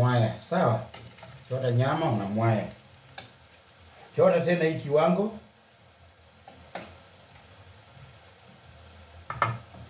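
A metal spoon scrapes and clinks against a pot.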